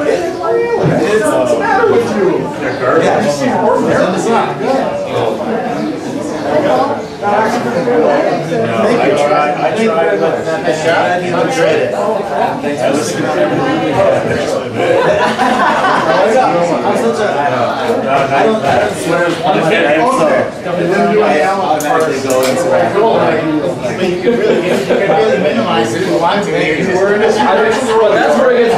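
A crowd of men and women chatter loudly nearby.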